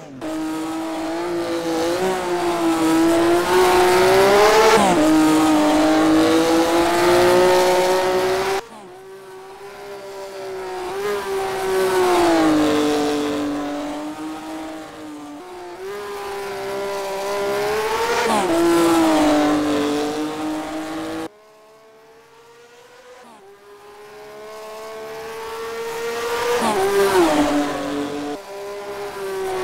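A racing car engine revs hard, rising and falling in pitch with gear changes.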